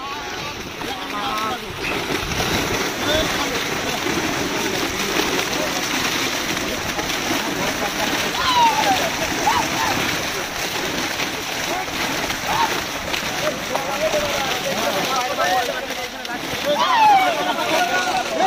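Several men shout excitedly close by.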